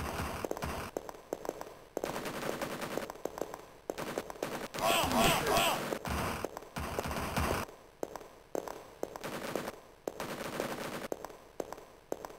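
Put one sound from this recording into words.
A gun fires repeated loud shots.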